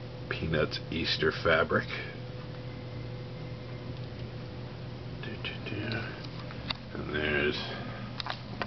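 A man speaks briefly close by.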